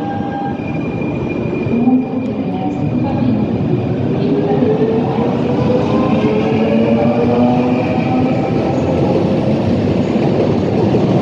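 A train's motors whine as it passes close by.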